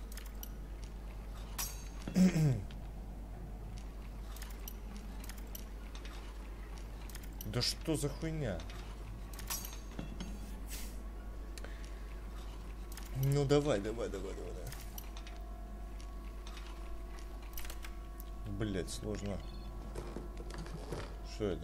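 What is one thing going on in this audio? A lockpick scrapes and clicks inside a metal lock.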